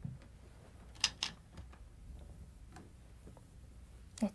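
Game stones click and clack against each other in a wooden bowl.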